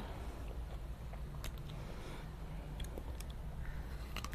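Fruit crunches and squelches as a man bites and tears it.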